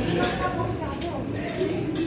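Metal dishes clink as they are washed.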